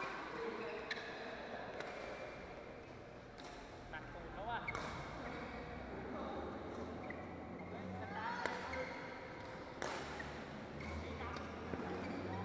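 Rackets smack a shuttlecock back and forth, echoing in a large hall.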